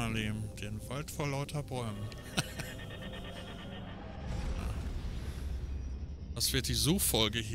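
A man talks and laughs with animation, close through a headset microphone.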